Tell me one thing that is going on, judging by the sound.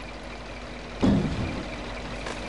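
Logs drop onto a truck bed with a heavy thud.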